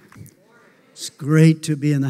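Another older man speaks loudly through a microphone in a large echoing hall.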